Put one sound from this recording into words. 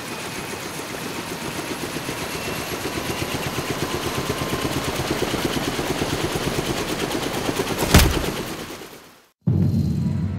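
A helicopter's rotor thumps rapidly and steadily, then fades away.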